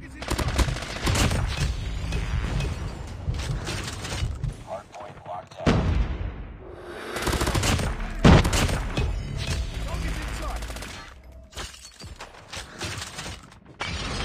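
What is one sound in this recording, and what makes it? A rifle fires in a video game.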